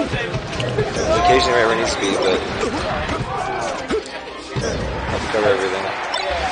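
Video game fighting sounds whoosh and thud with quick hits.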